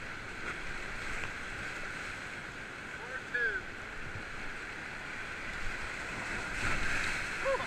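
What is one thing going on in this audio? Paddles splash in the water.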